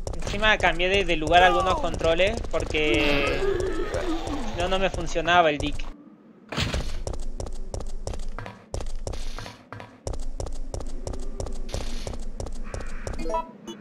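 Footsteps thud at a steady pace.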